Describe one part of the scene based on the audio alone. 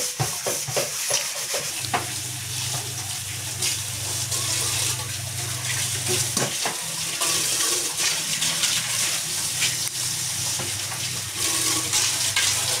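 Water runs from a tap and splashes into a sink.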